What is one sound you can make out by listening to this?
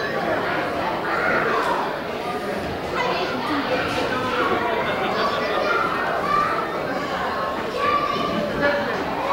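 Several people chatter and laugh in an echoing room.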